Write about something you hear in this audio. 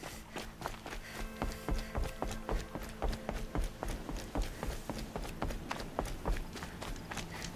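Footsteps thud over a wooden walkway.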